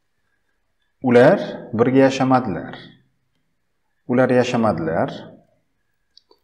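A man speaks calmly and clearly into a close microphone, in short phrases.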